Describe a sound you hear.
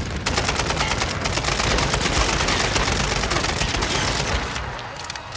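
Automatic gunfire rattles loudly in rapid bursts.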